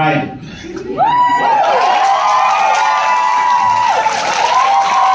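A crowd of guests cheers and whistles loudly.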